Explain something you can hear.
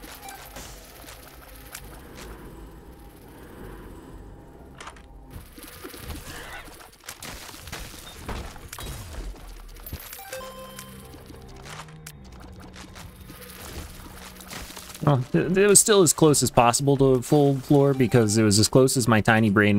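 Video game effects pop and splat quickly.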